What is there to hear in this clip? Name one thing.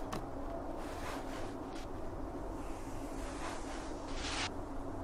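A body whooshes through the air while swinging around a pole.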